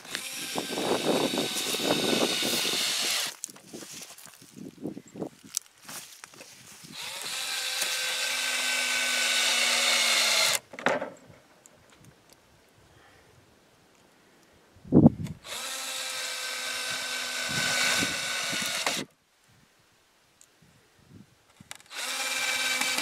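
A cordless drill whirs in bursts as it drives screws into wood.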